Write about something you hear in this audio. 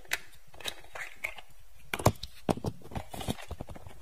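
A plastic battery cover clatters as it is lifted off.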